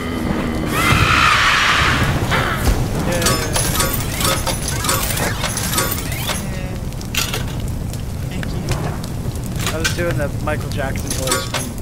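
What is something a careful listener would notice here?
Flames roar and crackle loudly.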